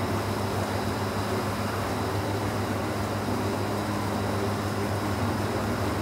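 Water pours from a bucket and splashes into a tank of water.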